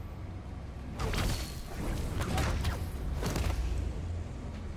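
Loud rushing whooshes sweep past as a figure swings through the air.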